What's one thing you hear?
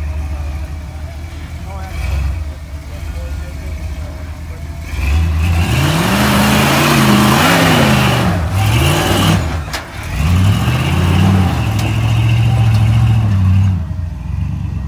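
An off-road buggy engine revs hard, roaring and rising and falling in pitch.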